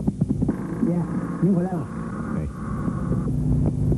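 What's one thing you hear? A man speaks cheerfully, close by.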